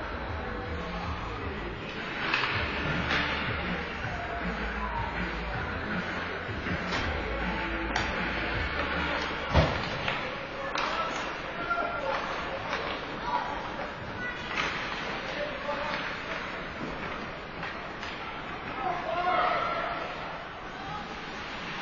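Sounds echo through a large, hard-walled rink.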